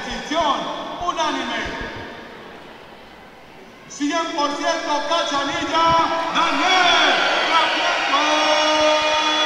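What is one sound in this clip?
A man announces loudly through a microphone and loudspeaker in a large echoing hall.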